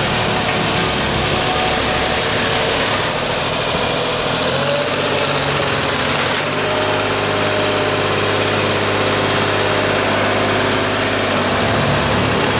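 A diesel engine of a road roller runs loudly and steadily close by.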